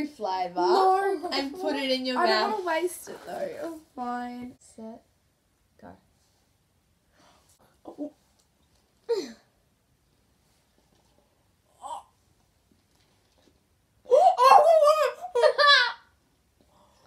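Young girls laugh together.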